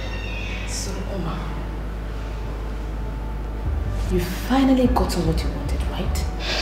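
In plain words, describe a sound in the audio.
A young woman speaks sharply and with animation close by.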